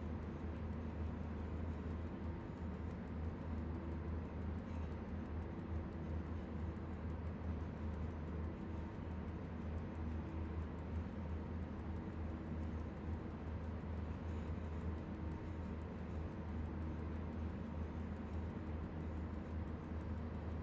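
An electric locomotive hums and rumbles steadily as it runs along the track.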